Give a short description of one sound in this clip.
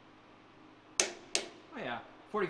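A torque wrench clicks sharply twice.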